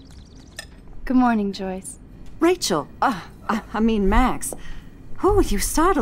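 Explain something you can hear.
A woman speaks in a startled, then friendly tone.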